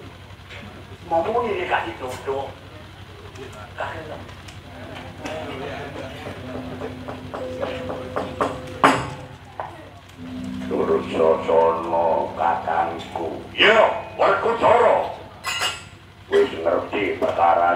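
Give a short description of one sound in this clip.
A man voices puppet characters with animation, close by.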